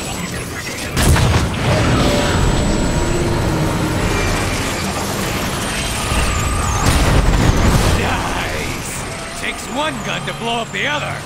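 Heavy guns fire in loud bursts.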